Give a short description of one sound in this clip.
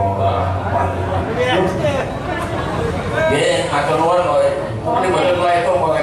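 A man speaks through a microphone over loudspeakers.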